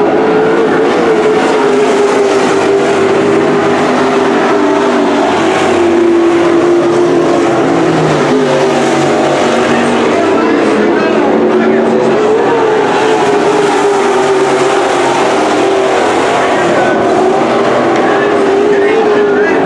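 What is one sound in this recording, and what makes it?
Race car engines roar loudly around a dirt track, rising and falling as cars pass.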